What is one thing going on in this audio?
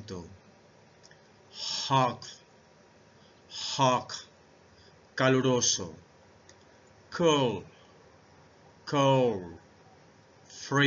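A middle-aged man speaks into a close microphone, pronouncing single words slowly with pauses between them.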